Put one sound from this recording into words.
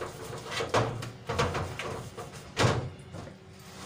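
A metal baking tray scrapes and clatters onto a metal counter.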